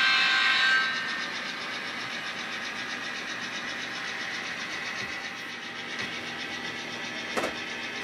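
An N-scale model diesel locomotive hums as it pulls freight cars along the track.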